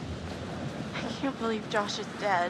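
A young woman speaks quietly with dismay.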